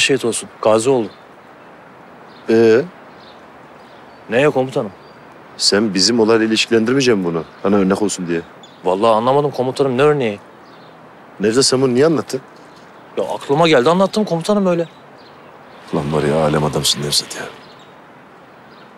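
A second man answers in a low, firm voice close by.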